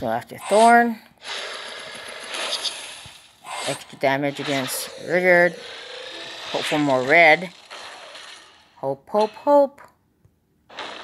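Magical blasts and impact effects burst during a game battle.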